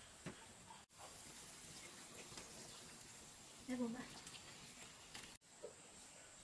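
Food sizzles and bubbles in a hot pan.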